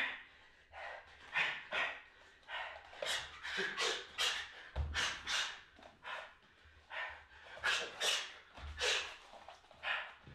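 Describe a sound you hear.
A man exhales sharply with each punch and kick.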